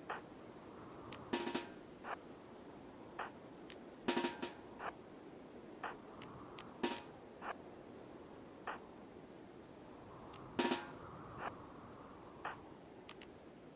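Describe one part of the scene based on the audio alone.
Short soft clicks and taps sound at irregular intervals.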